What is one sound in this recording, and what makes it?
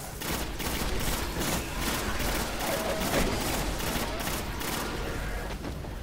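An automatic gun fires rapid bursts.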